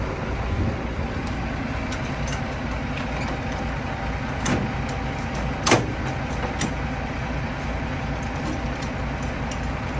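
A metal crank handle turns and clanks.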